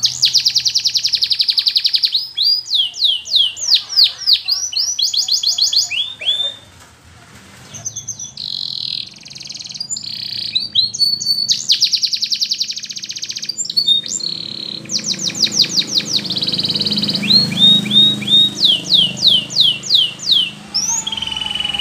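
A canary sings loudly close by in long trilling, warbling phrases.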